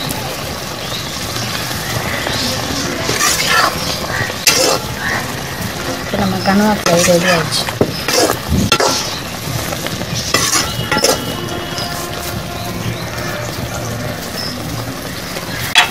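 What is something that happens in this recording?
A thick curry bubbles and sizzles in a pan.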